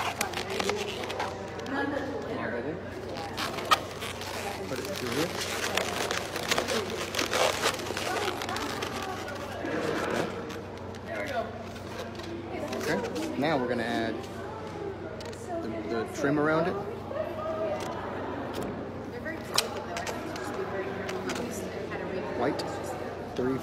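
Balloons squeak and rub as they are twisted.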